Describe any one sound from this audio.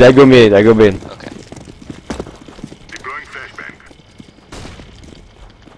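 Footsteps thud steadily on stone.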